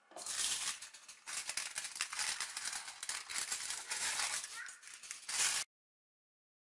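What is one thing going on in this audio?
Scissors snip through aluminium foil.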